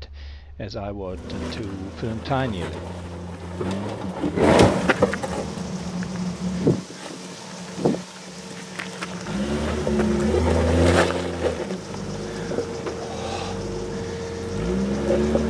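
An engine rumbles and revs as a vehicle crawls over rocks.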